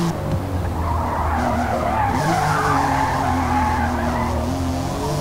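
Tyres screech as a car slides through a bend.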